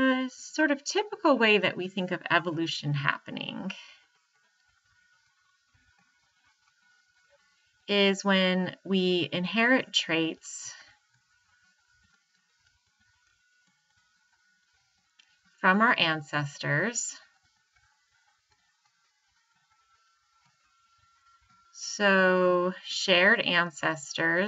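A woman speaks calmly into a microphone, pausing between phrases.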